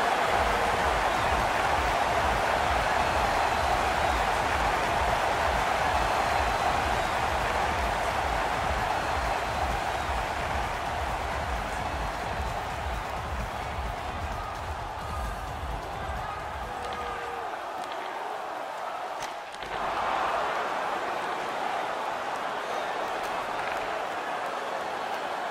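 A large crowd roars steadily in an echoing arena.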